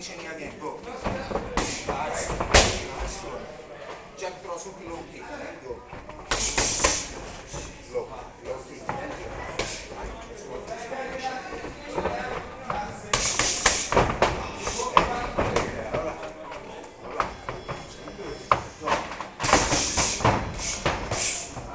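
Gloved punches and kicks smack sharply against pads, echoing in a large hall.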